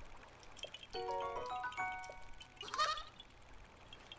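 A bright chiming jingle plays.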